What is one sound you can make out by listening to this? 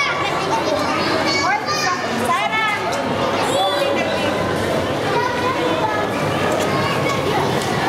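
A crowd of children chatter and call out excitedly nearby.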